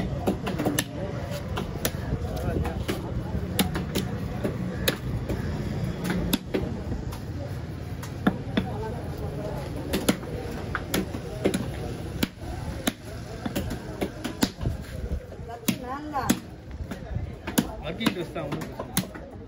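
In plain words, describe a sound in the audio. A knife chops and thuds through fish on a wooden block.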